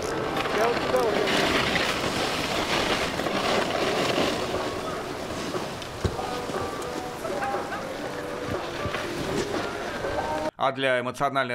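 A snowboard scrapes and hisses over snow.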